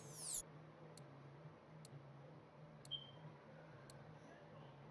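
Faint electronic clicks tick now and then.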